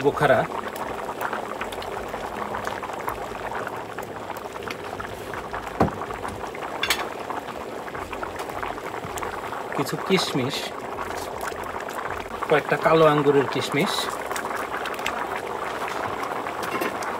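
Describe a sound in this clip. A large pot of food bubbles and simmers steadily.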